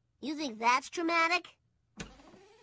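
A boy speaks with surprise, close by.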